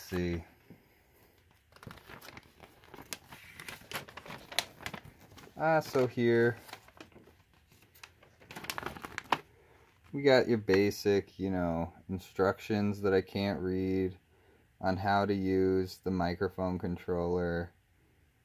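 Paper rustles and crinkles as it is unfolded.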